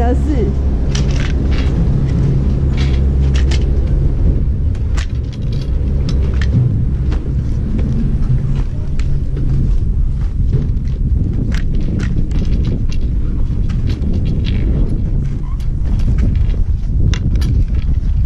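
Skis scrape and crunch over snow.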